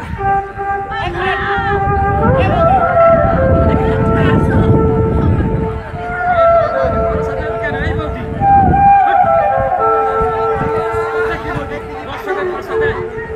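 A crowd of children chatters and calls out outdoors.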